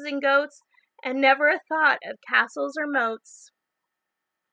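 A young woman reads aloud expressively, close by.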